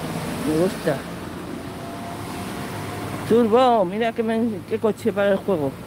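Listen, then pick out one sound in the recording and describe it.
A car engine hums as a car drives slowly past close by.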